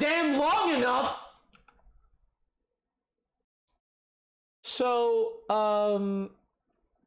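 A man speaks animatedly into a close microphone.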